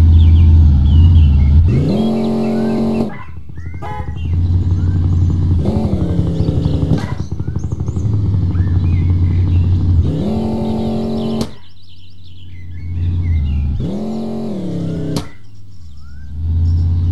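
A car engine hums and revs up repeatedly.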